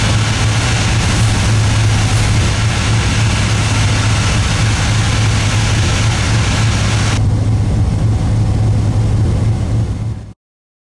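A locomotive engine hums low and steadily.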